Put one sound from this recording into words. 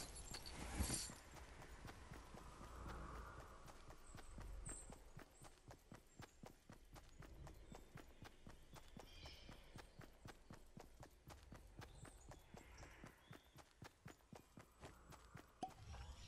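Footsteps patter quickly and steadily across the ground.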